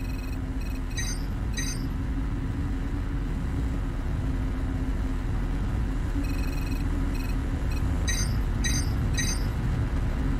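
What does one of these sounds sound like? A menu gives short electronic beeps.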